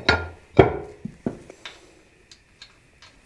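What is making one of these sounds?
Metal parts click and knock as a bolt is fitted by hand.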